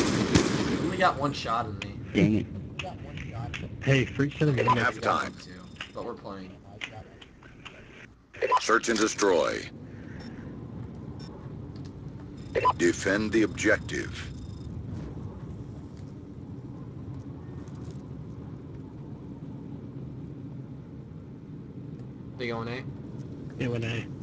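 A young man talks through a headset microphone.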